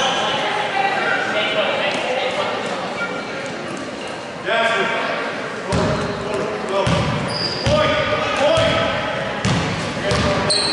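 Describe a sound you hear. A crowd chatters and calls out in a large echoing gym.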